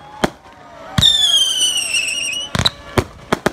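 A firework whistles shrilly as it shoots up.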